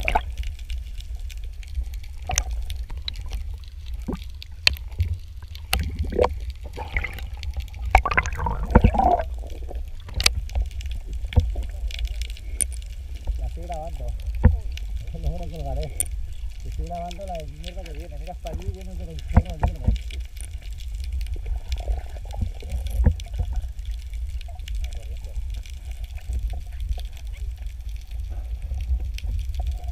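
Water rumbles and sloshes, heard from underwater, with sharp clicks and taps.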